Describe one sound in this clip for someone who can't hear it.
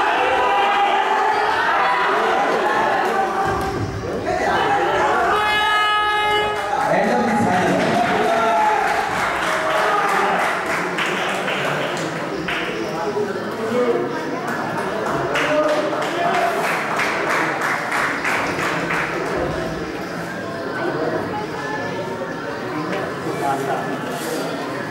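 A crowd of people talks and calls out in an echoing hall.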